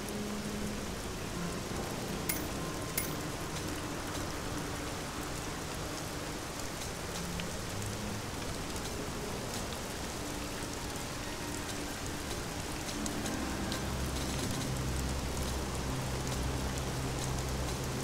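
Short menu clicks sound as menu items are selected.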